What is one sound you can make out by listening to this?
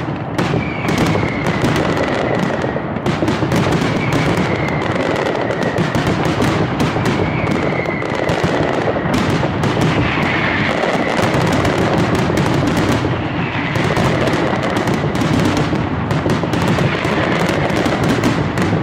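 Fireworks whistle with a high, falling shriek.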